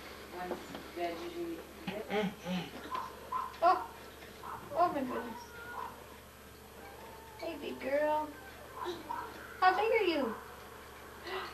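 A toddler babbles and squeals.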